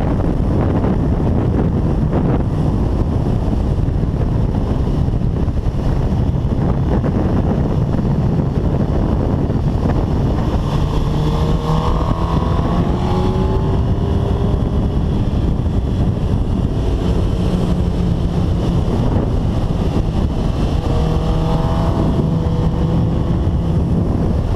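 Wind roars loudly past a fast-moving motorcycle.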